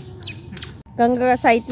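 A man speaks to a small child in a high, sing-song voice close by.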